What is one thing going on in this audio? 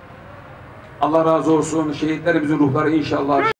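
A man chants a prayer loudly and melodiously.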